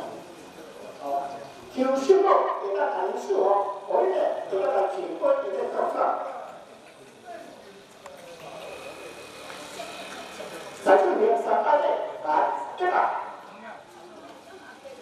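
A group of men and women chant prayers together.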